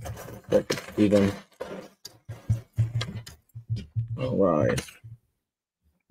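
Plastic toy bricks click and rattle as a man sorts them by hand.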